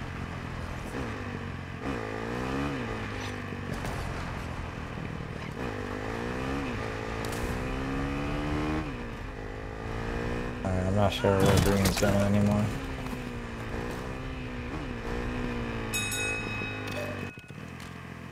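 A motorbike engine revs and roars, rising and falling in pitch.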